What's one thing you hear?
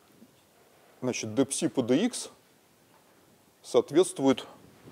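A middle-aged man speaks, lecturing in short phrases.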